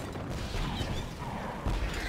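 A laser weapon fires with a humming buzz.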